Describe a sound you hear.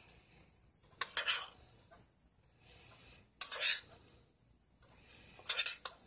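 A spoon stirs cooked pasta in a metal pot, scraping against the sides in short bursts.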